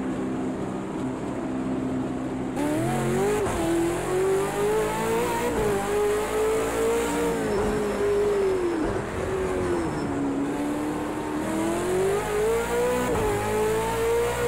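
A racing car engine idles low, then revs up and roars, rising and falling with gear changes.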